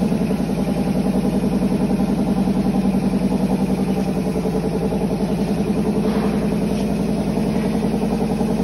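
A machine hums loudly with a fast, steady throbbing rattle.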